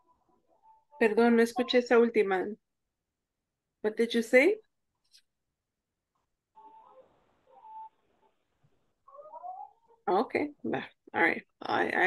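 A woman speaks clearly and slowly through an online call.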